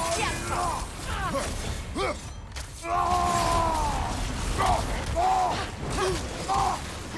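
Blades slash and strike with sharp hits.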